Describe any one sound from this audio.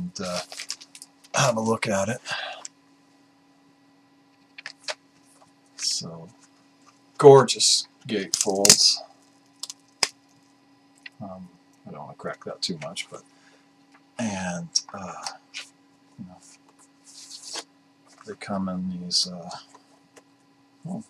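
A middle-aged man talks calmly and close to a microphone, in short bursts with pauses.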